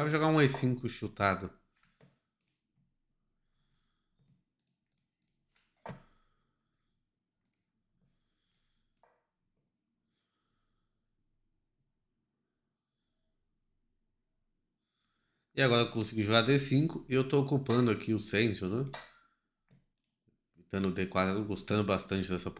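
A man speaks calmly and with animation close to a microphone.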